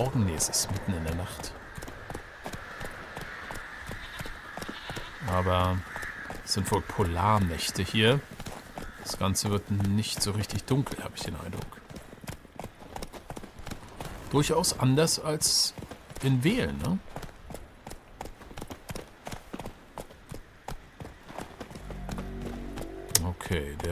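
Hooves thud steadily as a horse trots along a dirt path.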